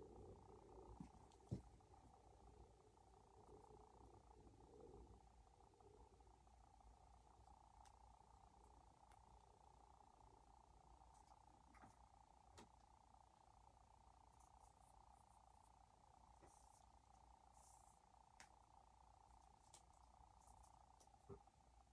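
Small plastic toy pieces click and clatter.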